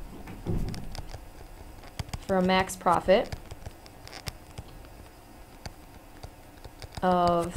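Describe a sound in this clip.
A stylus taps and scratches on a tablet.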